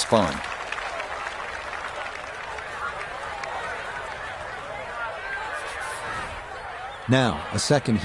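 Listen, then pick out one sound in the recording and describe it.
A crowd cheers and murmurs outdoors.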